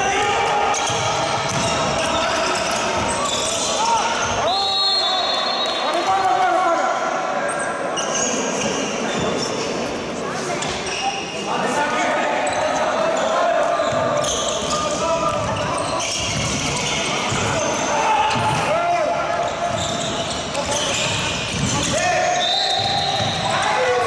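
A handball bounces on a wooden court in an echoing sports hall.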